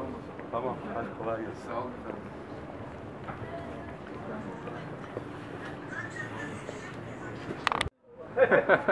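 A man talks through a face mask, close by.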